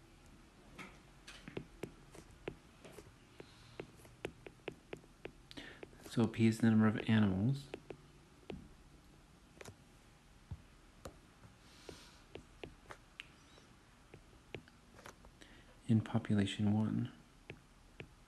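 A stylus taps and scratches on a glass tablet.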